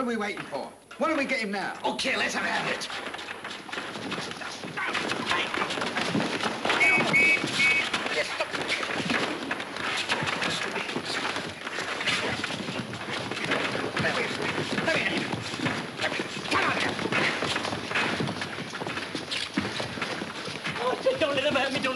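A crowd of young men shouts and yells in a scuffle.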